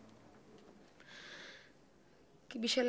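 A page of a book rustles as it turns.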